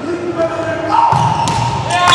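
A volleyball is struck hard on a serve.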